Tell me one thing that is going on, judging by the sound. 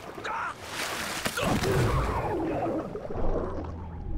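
Water splashes loudly as a body is dragged under.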